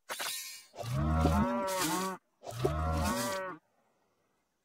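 Cartoon cows moo.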